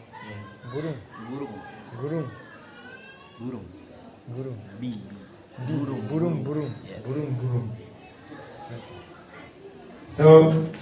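A young man speaks cheerfully into a close microphone.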